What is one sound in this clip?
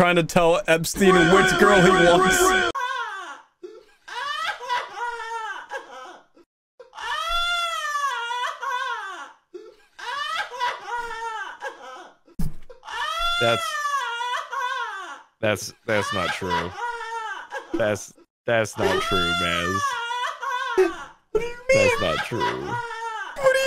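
Another young man laughs and speaks with animation close to a microphone.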